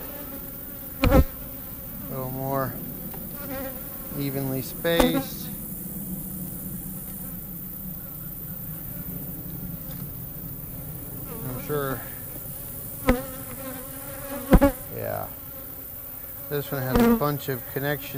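A metal tool knocks and scrapes against wooden hive frames.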